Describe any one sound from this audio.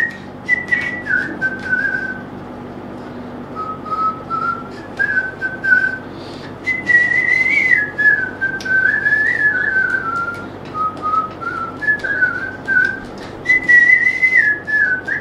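A man whistles a tune with a high, breathy tone.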